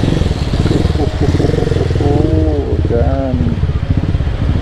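A man's voice calls out nearby.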